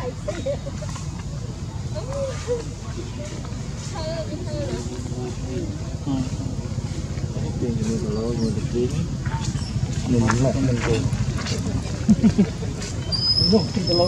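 Leaves and branches rustle as a young monkey climbs and leaps.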